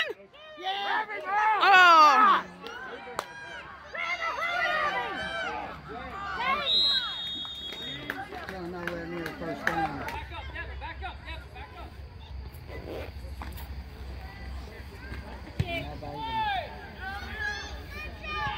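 A crowd cheers and shouts loudly outdoors.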